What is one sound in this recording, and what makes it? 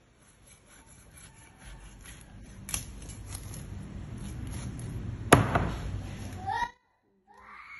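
A knife scrapes scales off a fish on a wooden board.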